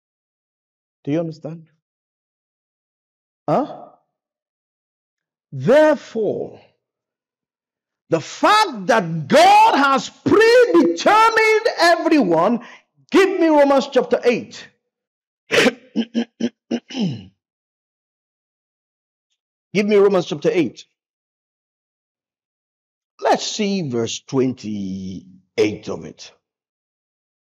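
A man preaches with animation through a microphone, in short bursts with pauses.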